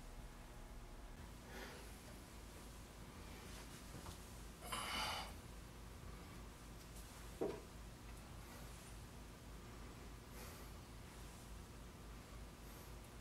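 Fingers rub softly over damp clay.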